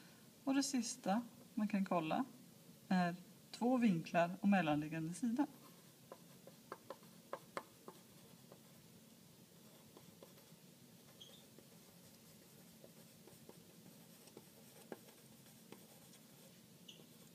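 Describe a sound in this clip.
A pen scratches softly on paper as it writes.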